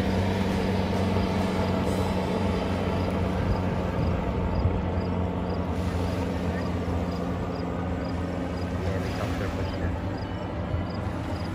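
A helicopter's rotor thuds steadily overhead and fades away.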